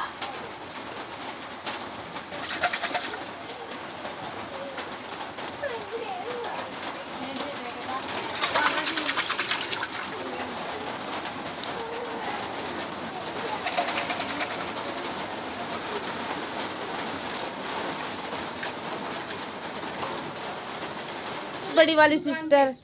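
Hands squelch and slosh wet batter inside a clay pot.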